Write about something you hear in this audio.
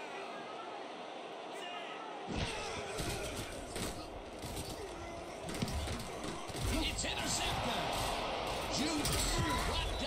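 A stadium crowd roars and cheers.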